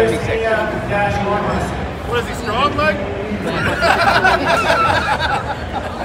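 A crowd of men and women chatters and shouts nearby.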